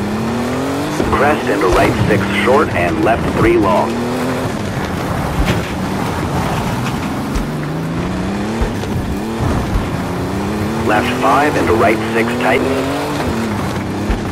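Tyres skid and squeal through tight corners.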